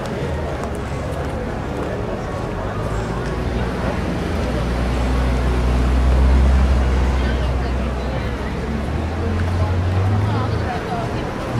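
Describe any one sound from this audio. A car engine hums nearby as a car crosses slowly.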